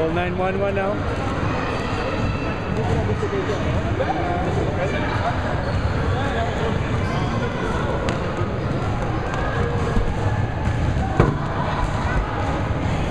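A crowd murmurs in a large echoing gym.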